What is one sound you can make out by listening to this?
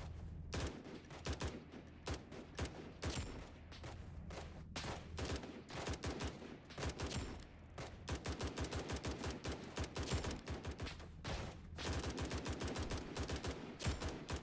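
Rifle shots ring out in quick bursts, with a short echo.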